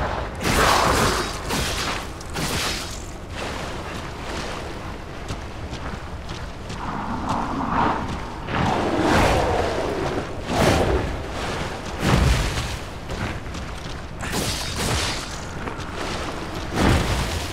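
Blades slash and strike with heavy thuds.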